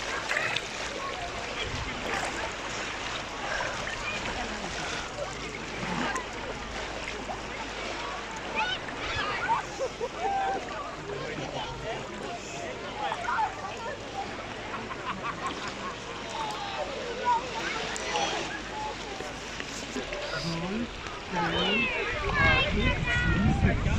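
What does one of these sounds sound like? Shallow water laps gently over sand at close range.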